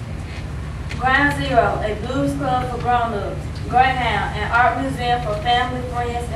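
A young girl speaks clearly into a microphone, heard through a loudspeaker.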